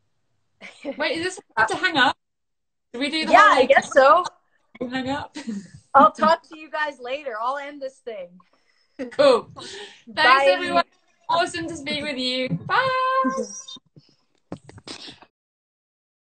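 Another young woman laughs and talks over an online call.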